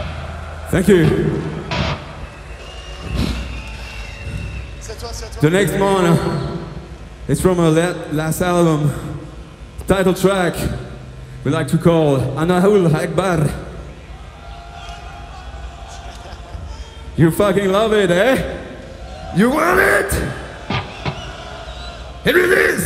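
A man's voice sounds in short phrases through a microphone over loudspeakers.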